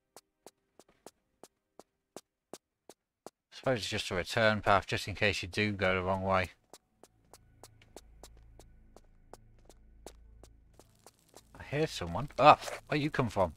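Quick footsteps run on a stone floor.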